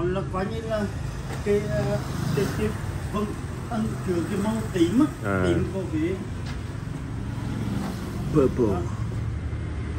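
A man speaks with animation close by.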